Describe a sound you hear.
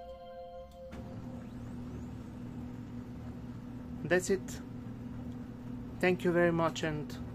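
A printer's motor hums steadily as the machine starts up.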